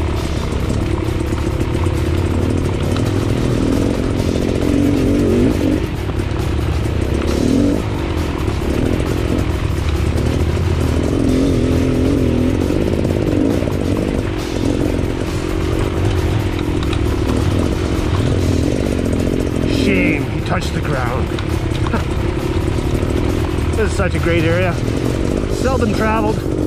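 A dirt bike engine revs and putters up close.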